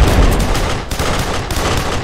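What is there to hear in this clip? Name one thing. A pistol fires shots.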